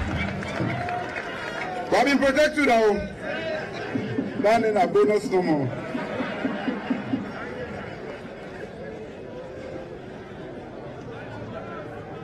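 A man speaks with emphasis into a microphone, heard through loudspeakers outdoors.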